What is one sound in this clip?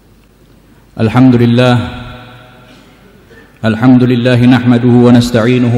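A man chants loudly through a microphone in a large echoing hall.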